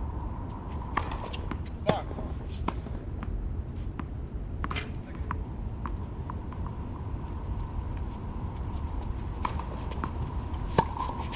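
Tennis balls are struck with rackets in sharp pops.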